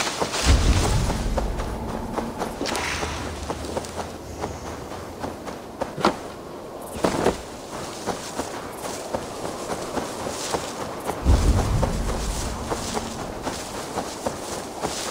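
Footsteps rustle through tall grass and bushes.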